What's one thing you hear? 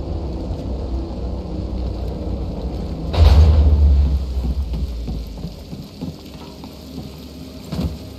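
Footsteps clank on a metal floor.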